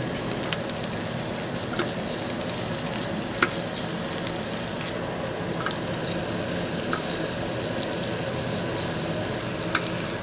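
Scissors snip through grilled meat.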